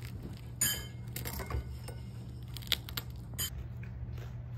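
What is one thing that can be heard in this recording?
A fork scrapes and clinks against a plate.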